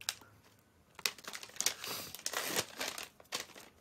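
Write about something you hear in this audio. Plastic packaging crinkles.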